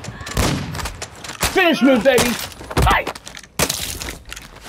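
Loud gunshots and blasts go off close by.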